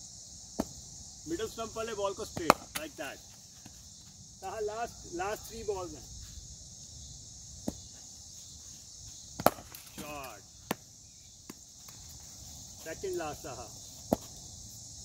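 A cricket bat strikes a ball with sharp knocks.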